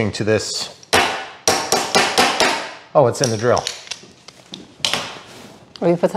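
Small hard objects click and clatter.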